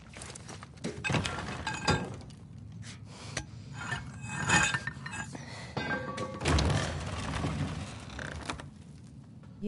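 A wooden door creaks and cracks as it is pried open.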